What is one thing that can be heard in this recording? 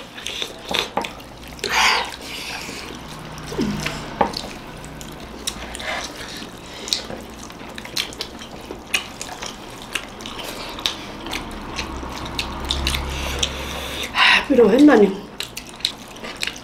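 Fingers squish and mix rice on a plate.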